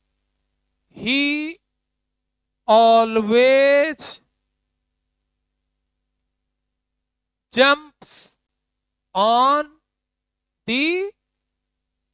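A young man speaks in short, loud phrases, as if teaching, close by.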